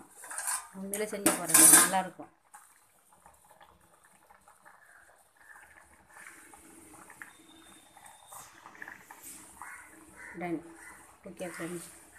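Food bubbles gently in a pot.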